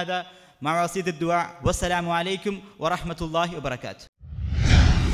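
A young man sings melodically into a microphone.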